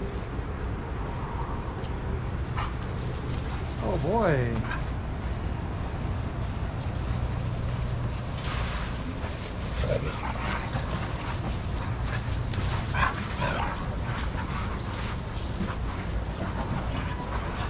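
Dogs scamper and scuffle across sandy ground.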